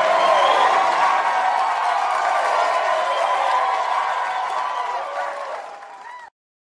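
A crowd of men and women cheers and shouts with excitement.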